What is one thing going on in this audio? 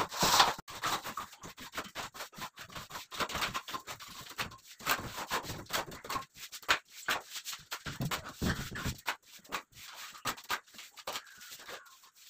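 A trowel scrapes and smooths wet plaster on a wall.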